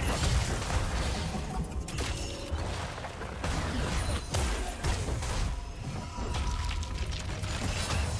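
Combat sound effects clash and strike in quick bursts.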